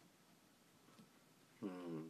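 A man gulps a drink from a can close by.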